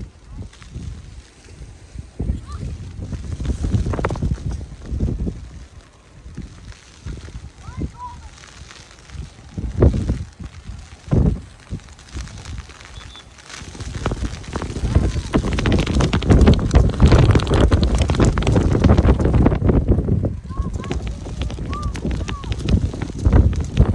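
Wind gusts and rumbles outdoors, growing stronger midway.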